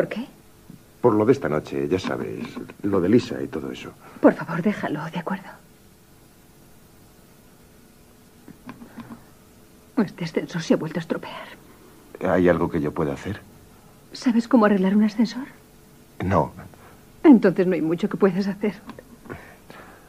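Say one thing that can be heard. A young woman speaks, close by.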